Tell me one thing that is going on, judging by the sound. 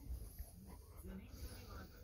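A dog pants softly up close.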